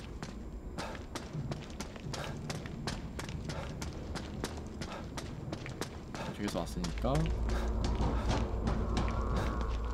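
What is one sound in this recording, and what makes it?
Footsteps thud quickly on metal walkways and stairs.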